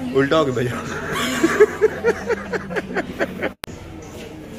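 A young man laughs loudly up close.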